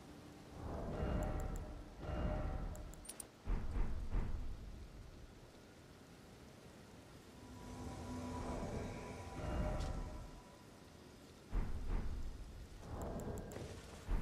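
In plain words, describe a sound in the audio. Short menu clicks and chimes sound as items are chosen.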